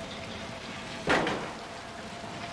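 A heavy wooden lid thuds shut.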